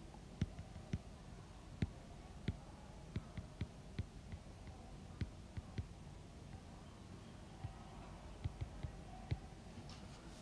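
A pen taps and scratches on a tablet.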